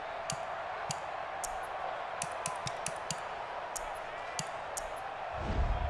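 Short game menu clicks tick in quick succession.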